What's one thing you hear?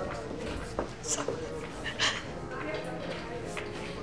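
A woman sobs quietly.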